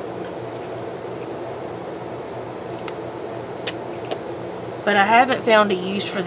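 A plastic scraper rubs over paper.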